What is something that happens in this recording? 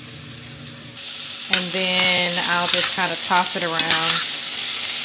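Tongs scrape and toss food in a metal pan.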